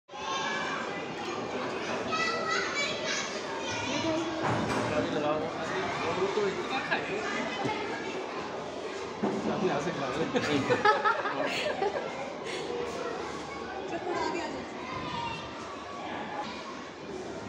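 A young girl speaks.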